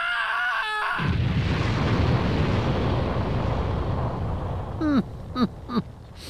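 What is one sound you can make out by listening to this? An explosion booms and rumbles loudly.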